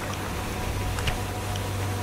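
Water splashes hard against a kayak.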